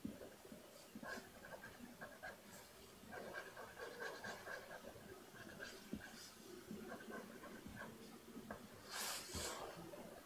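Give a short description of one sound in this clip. A felt-tip marker scratches softly across paper.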